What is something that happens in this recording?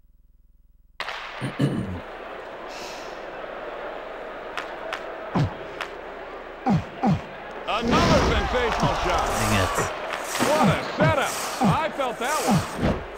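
A crowd roars in a hockey video game.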